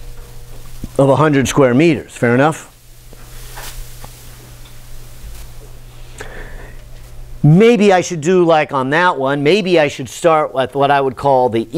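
A middle-aged man speaks clearly and with animation.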